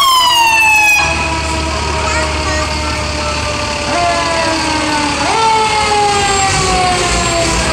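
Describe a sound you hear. A bus engine rumbles as the bus drives slowly past close by.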